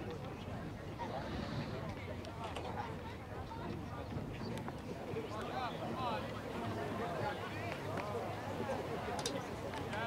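A crowd of spectators talks and calls out nearby, outdoors.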